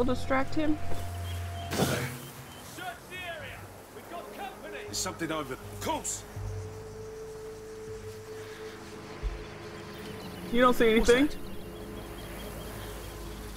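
Dry grass rustles as someone creeps through it.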